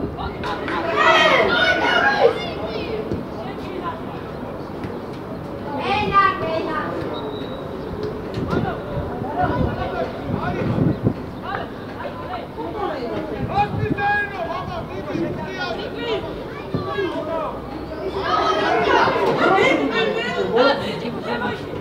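Young male players shout to each other across an open pitch.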